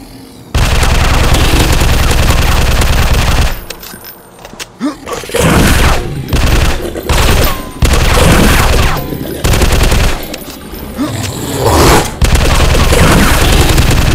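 An automatic rifle fires in long rapid bursts.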